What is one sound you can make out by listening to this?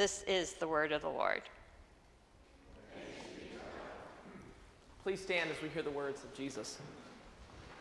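A young woman reads aloud calmly through a microphone in a large echoing hall.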